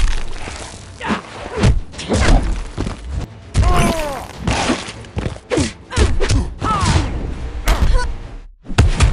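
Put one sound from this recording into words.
A fighter grunts and cries out with effort.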